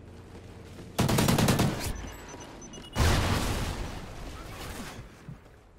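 Rapid gunshots crack loudly in a burst.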